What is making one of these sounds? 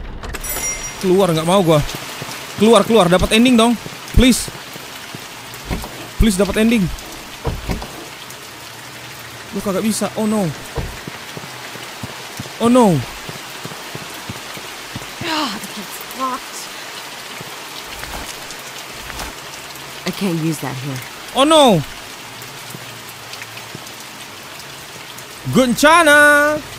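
A young man talks with animation into a microphone, in bursts with pauses.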